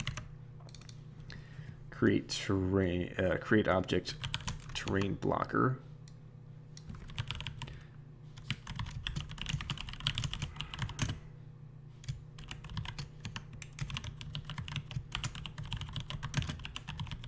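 Keyboard keys click rapidly as someone types.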